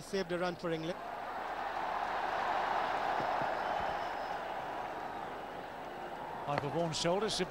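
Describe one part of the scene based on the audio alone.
A large crowd cheers and roars in a stadium, then slowly dies down.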